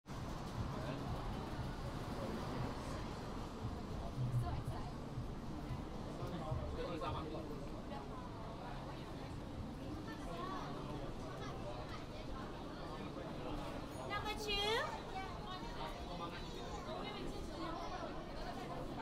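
A crowd of people chatters in a busy, echoing walkway.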